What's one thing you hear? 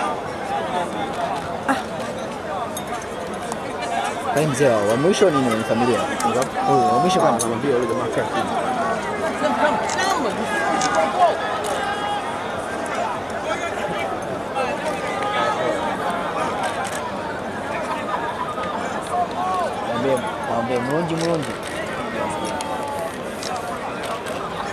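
A group of young men sing and chant loudly outdoors.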